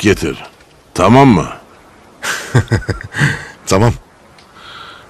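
A second man answers in a raised voice.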